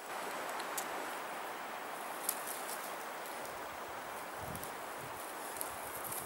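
Spruce branches rustle and brush against a hand.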